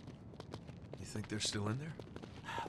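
A man asks a question in a low voice.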